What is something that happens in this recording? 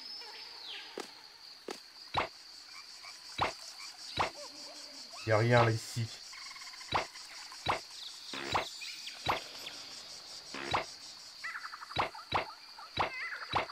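Cartoonish game sound effects pop and chirp as a character jumps and climbs.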